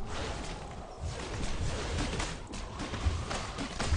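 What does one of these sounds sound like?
Video game combat sound effects clash and thud.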